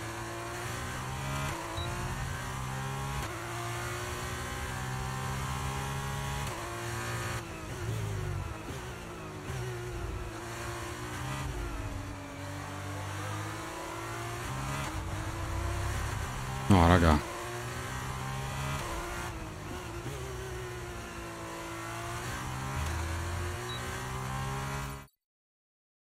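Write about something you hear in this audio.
A racing car engine screams and rises and falls in pitch as it shifts gears.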